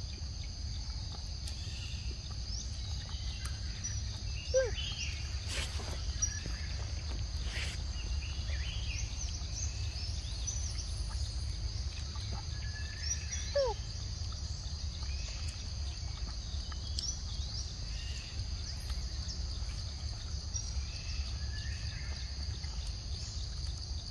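Insects buzz and chirp steadily in a forest.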